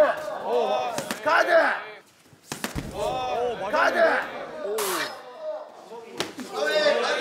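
Gloved punches thud sharply against pads.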